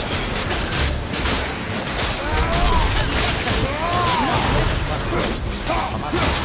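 Weapons clash and thud in a loud fight.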